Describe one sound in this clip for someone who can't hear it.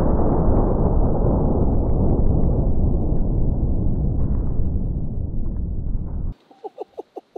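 A slowed-down explosion roars with a deep, steady rumble.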